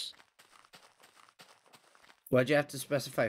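Footsteps tread softly and steadily on grass.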